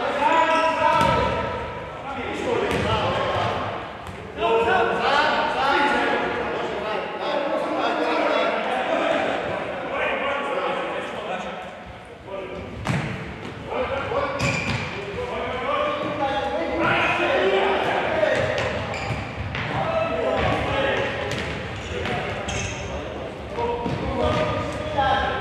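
A ball is kicked sharply on a hard indoor court.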